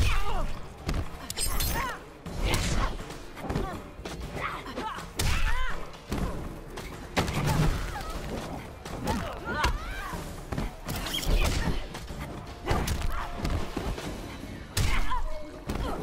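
Blood splatters with wet squelches.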